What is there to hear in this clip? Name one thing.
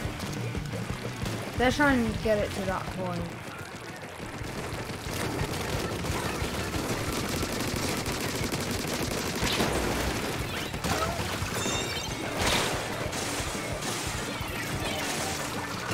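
Game ink weapons spray and splatter steadily with electronic effects.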